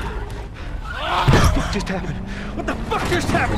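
A man speaks in shock.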